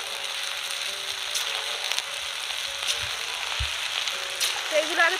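Batter drips and splashes into hot oil.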